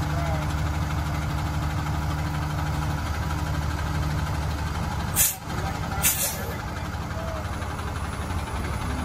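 A diesel truck engine idles with a steady low rumble close by.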